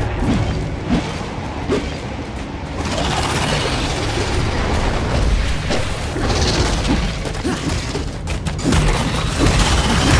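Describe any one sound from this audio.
Fire roars loudly.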